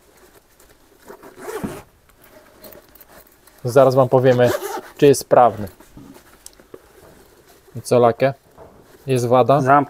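A fabric backpack rustles.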